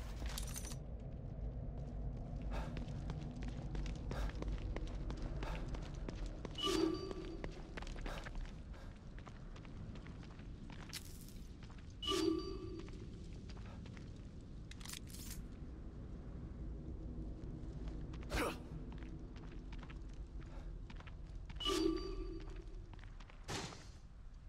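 Footsteps splash on wet ground.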